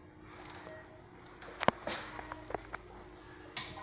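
A toilet lid clicks and clatters.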